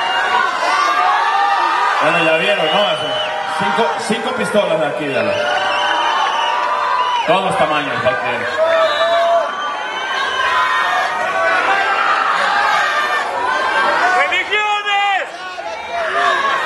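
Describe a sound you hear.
A rock band plays loudly through a sound system in a large echoing hall.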